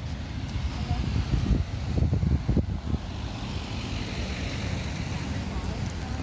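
Cars drive past on a nearby road.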